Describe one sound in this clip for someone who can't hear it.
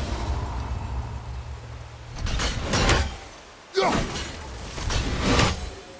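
Water rushes down a waterfall nearby.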